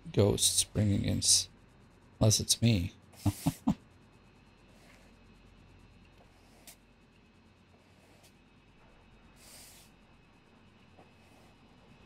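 A mop scrubs across a wooden floor.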